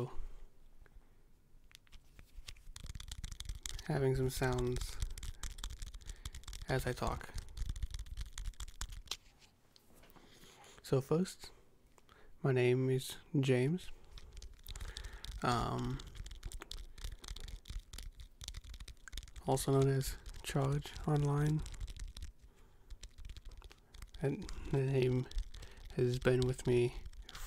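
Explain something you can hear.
Fingers rub and tap on a microphone with crackling scratches.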